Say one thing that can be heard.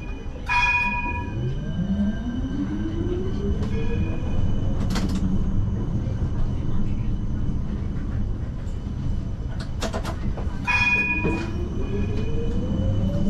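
A tram motor whines, rising in pitch as it speeds up.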